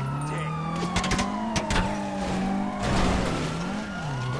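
A car scrapes and bumps against a wall.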